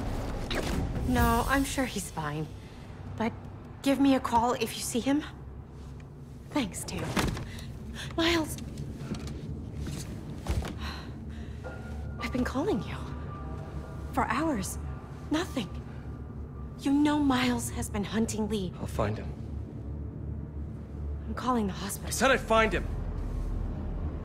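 A woman speaks anxiously and tearfully, close by.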